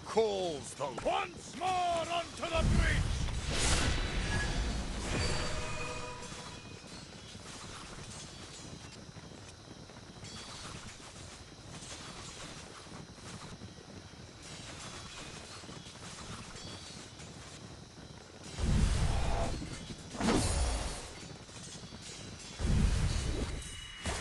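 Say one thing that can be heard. Swords and armour clash in a noisy battle.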